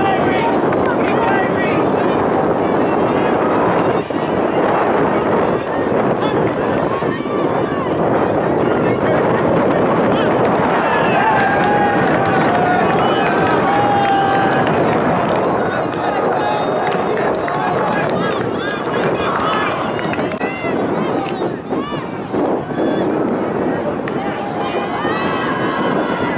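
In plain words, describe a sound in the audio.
A crowd of young people chatter and call out across an open field.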